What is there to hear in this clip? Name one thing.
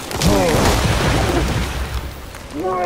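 Water crashes and sprays in a heavy splash.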